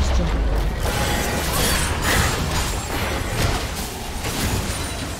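Game spells burst and crackle in a busy fight.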